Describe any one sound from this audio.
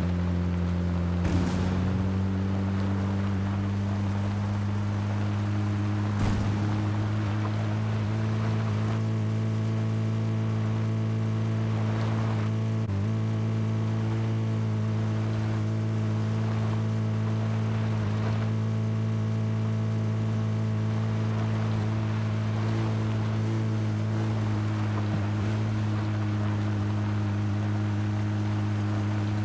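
A vehicle engine hums steadily as it drives over rough ground.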